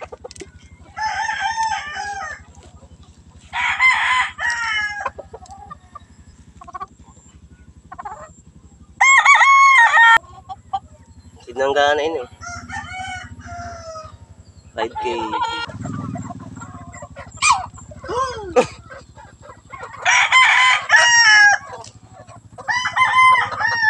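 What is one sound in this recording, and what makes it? A rooster crows loudly and repeatedly close by.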